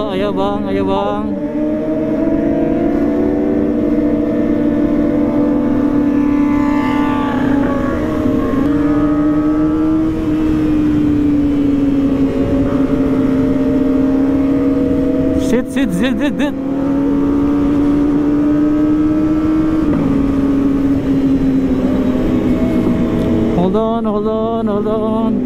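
A motorcycle engine hums steadily close by, rising and falling as it speeds up and slows.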